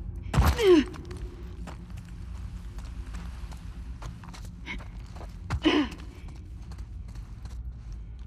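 Footsteps scuff over a gritty floor.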